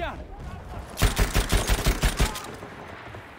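A light machine gun fires in rapid bursts.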